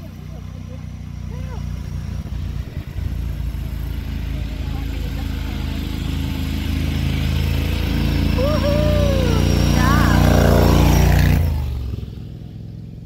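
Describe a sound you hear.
A small off-road vehicle's engine revs as it climbs closer, growing louder, then passes and quickly fades.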